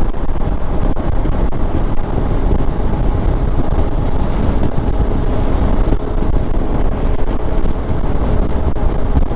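Wind rushes loudly past the microphone.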